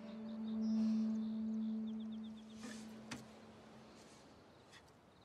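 An acoustic guitar string rings and slowly fades.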